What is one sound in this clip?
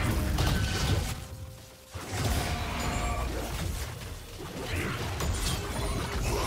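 Fantasy combat effects clash and crackle in a fast skirmish.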